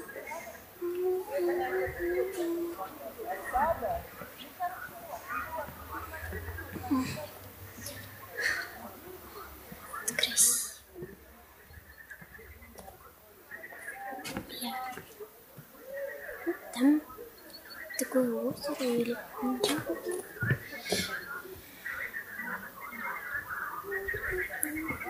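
A young girl talks calmly, close to the microphone, outdoors.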